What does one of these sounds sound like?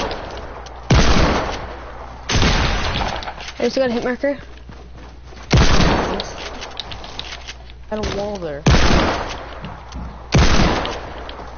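Gunshots crack in sharp single blasts.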